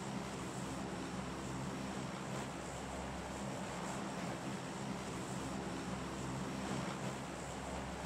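An airplane engine drones steadily.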